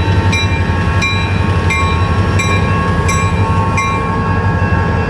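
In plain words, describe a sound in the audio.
A railroad crossing bell rings rapidly and stops.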